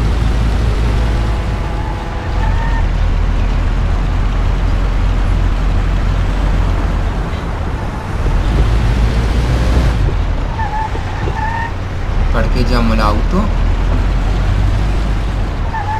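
An old car engine rumbles steadily as the car drives along.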